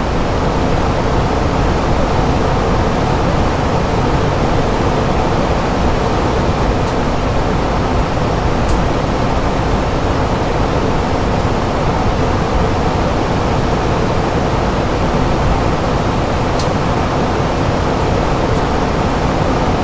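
Air rushes past a flying aircraft with a steady, deep roar.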